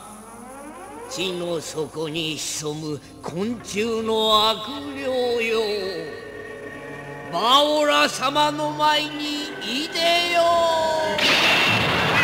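A man's voice shouts dramatically.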